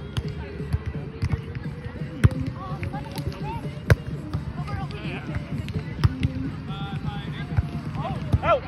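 Young men and women call out to each other outdoors.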